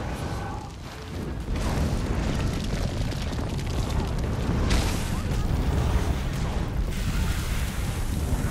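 Magic impacts burst with sharp cracks.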